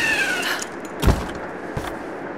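Feet land with a heavy thud.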